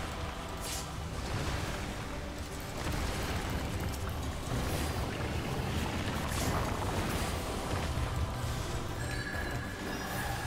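Magic spell effects whoosh and crackle in a game battle.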